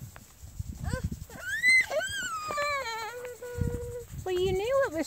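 A toddler babbles and squeals in a high voice.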